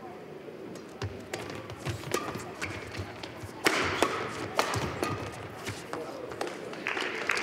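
Badminton rackets smack a shuttlecock in a quick rally in a large echoing hall.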